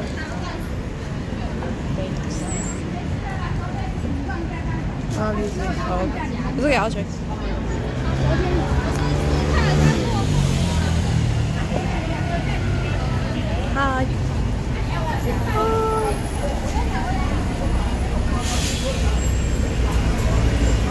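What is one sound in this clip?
Traffic rumbles steadily along a busy road outdoors.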